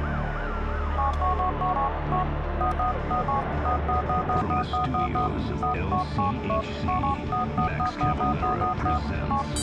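A mobile phone beeps quickly over and over as its buttons are pressed.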